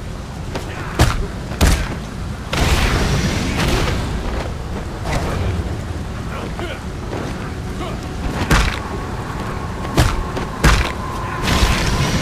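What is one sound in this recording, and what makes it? Sharp blows land with heavy thuds during a fight.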